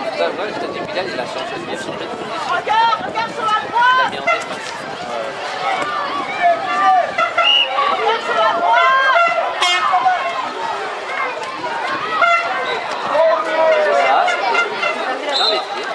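Adult spectators nearby shout and cheer outdoors.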